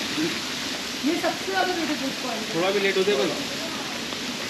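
A man speaks casually nearby.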